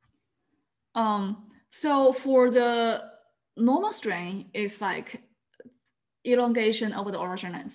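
A young woman speaks calmly and warmly over an online call.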